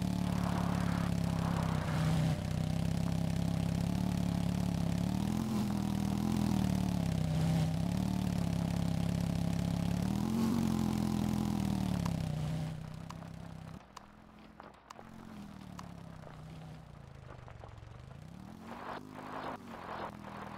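A motorbike engine drones and revs up and down.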